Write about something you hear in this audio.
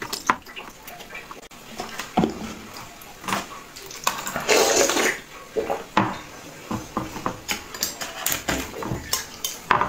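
Ice crackles and fizzes in a glass.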